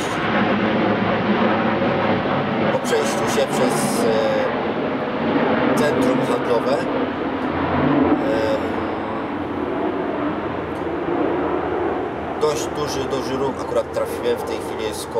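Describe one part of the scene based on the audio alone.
A young man speaks calmly, close by, outdoors.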